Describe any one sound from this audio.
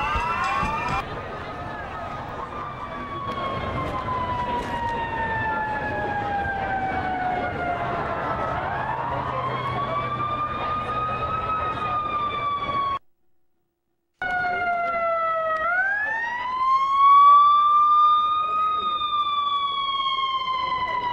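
A siren wails, sweeping up and down as an emergency vehicle approaches.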